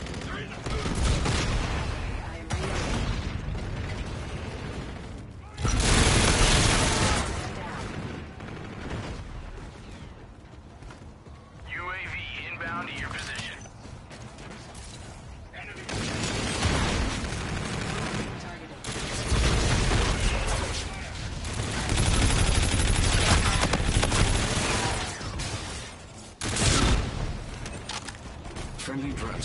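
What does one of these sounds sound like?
Gunfire rattles in bursts from a video game.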